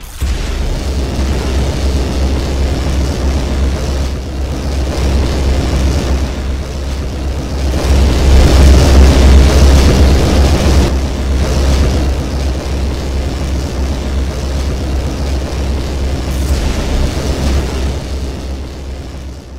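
A laser beam hums loudly and steadily.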